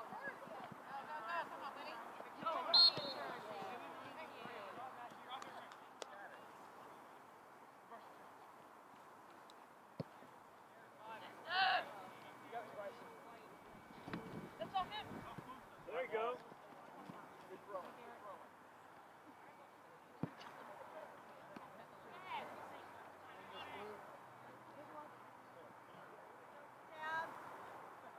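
Teenage boys shout to each other across an open field outdoors.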